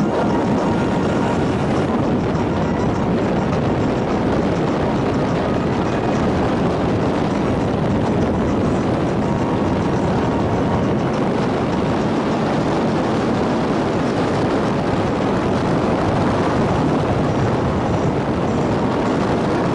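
A car drives along a road.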